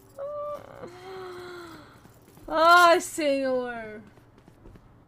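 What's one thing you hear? A young woman speaks with animation into a microphone, her voice rising in drawn-out exclamations.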